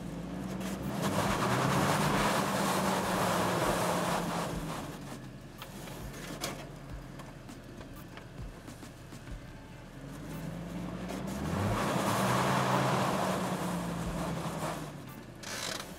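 Tyres spin and spray loose dirt and gravel.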